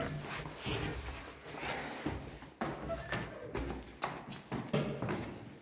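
Footsteps in sandals climb stone stairs.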